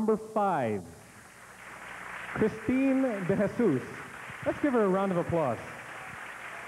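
A man announces through a handheld microphone over a loudspeaker.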